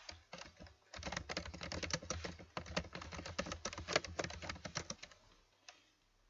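Computer keys clatter quickly as someone types.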